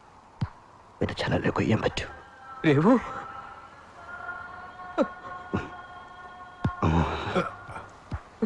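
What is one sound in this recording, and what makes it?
A man groans and gasps in pain close by.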